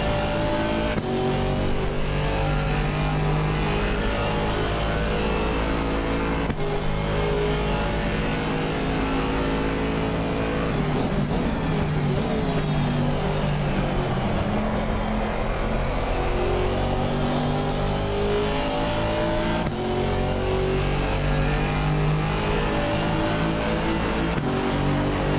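Gear changes cut the engine with sharp clicks.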